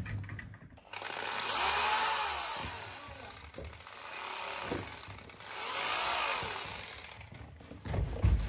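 A power drill whirs in bursts against plaster.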